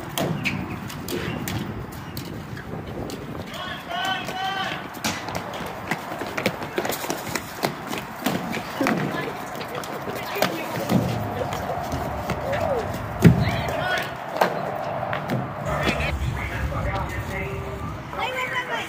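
A crowd of young people shouts and yells excitedly outdoors.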